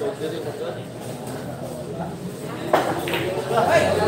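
A cue ball clacks against other pool balls.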